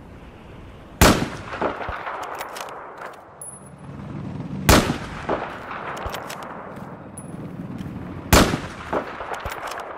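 A sniper rifle fires loud single shots that echo and roll away.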